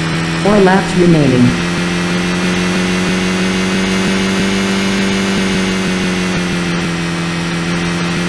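A game car's engine hums steadily.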